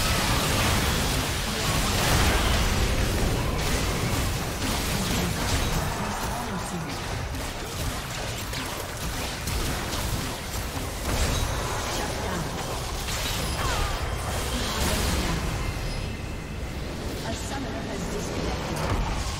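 Game spell effects crackle and blast in rapid bursts.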